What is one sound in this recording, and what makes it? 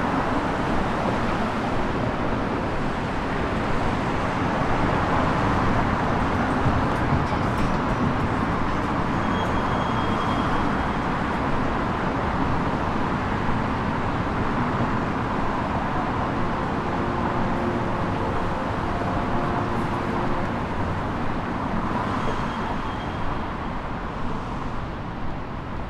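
Outdoors in a city, traffic rumbles steadily nearby.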